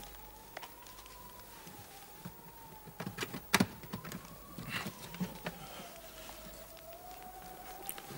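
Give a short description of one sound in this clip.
A wooden box creaks and thumps as it is set down.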